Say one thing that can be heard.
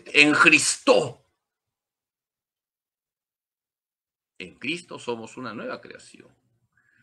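A man speaks calmly through an online call, with pauses.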